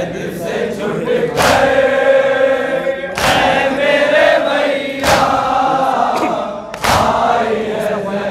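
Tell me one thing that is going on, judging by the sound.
A large crowd of men chants loudly together in an echoing hall.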